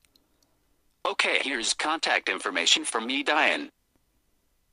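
A synthetic phone voice speaks a calm reply through a small speaker.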